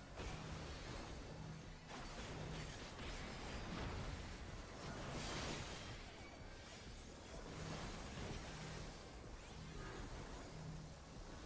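Battle sound effects of spells and impacts crash and whoosh.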